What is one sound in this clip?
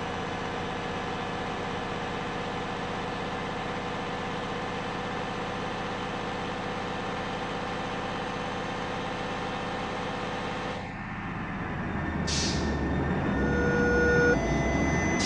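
A bus engine drones steadily at high speed.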